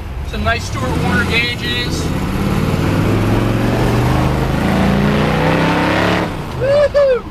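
A car engine rumbles and revs as the car drives along.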